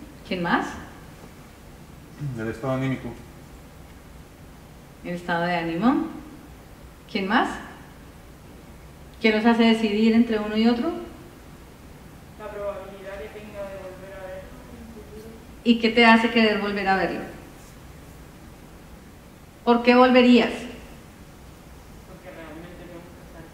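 A woman speaks slowly and clearly through a microphone, in bursts with long pauses, in a large echoing hall.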